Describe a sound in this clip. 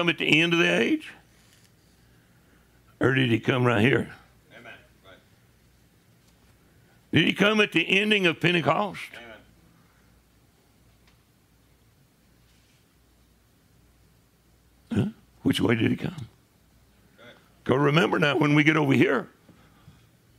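An elderly man speaks calmly into a microphone, in bursts with long pauses.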